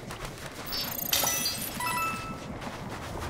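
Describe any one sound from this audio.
A sparkling chime rings out as a glowing object bursts open.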